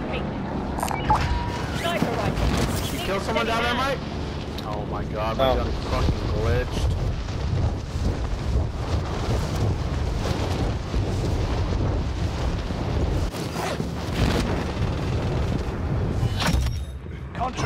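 Wind rushes loudly during a fast fall through the air.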